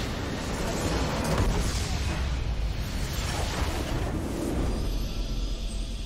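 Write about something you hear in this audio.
A large structure in a game explodes with a deep boom.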